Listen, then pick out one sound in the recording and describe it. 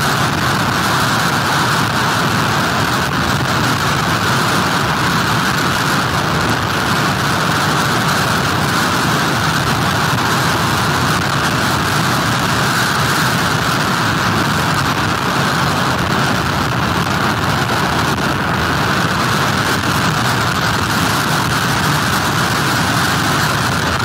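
Strong wind blows loudly outdoors.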